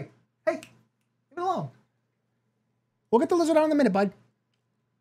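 A young man speaks with animation close to a microphone, in short bursts.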